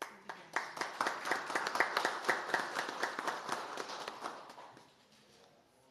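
A group of people applauds.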